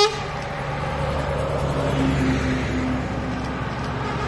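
A second bus approaches with a low engine hum.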